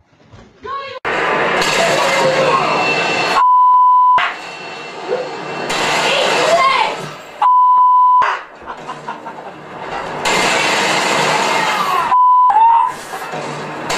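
A television plays loud, rushing, hissing sound.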